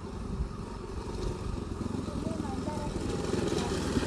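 A motorbike engine hums as it approaches.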